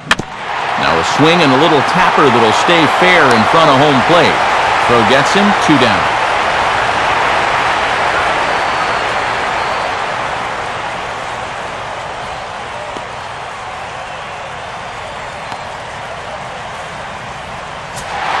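A large crowd cheers and roars in a stadium, then slowly quiets down.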